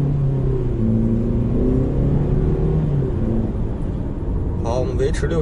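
Tyres rumble on the road inside a moving car.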